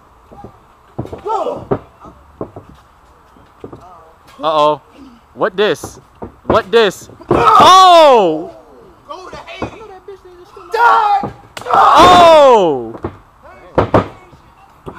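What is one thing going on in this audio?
Young men shout loudly nearby outdoors.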